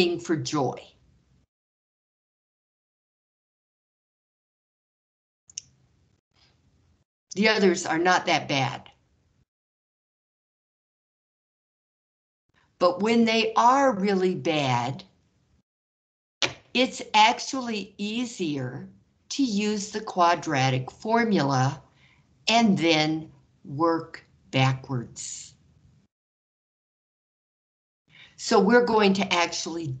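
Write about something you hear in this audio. A woman explains calmly through a microphone, with pauses.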